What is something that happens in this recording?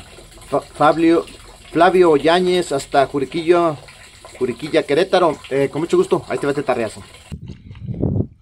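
A middle-aged man talks calmly and close to the microphone.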